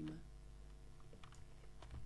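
Dirt crunches as a block is dug away.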